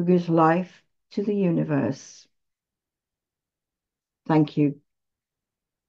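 A woman reads aloud calmly through an online call microphone.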